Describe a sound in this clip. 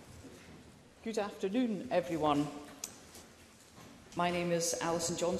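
A woman speaks calmly into a microphone in a large chamber.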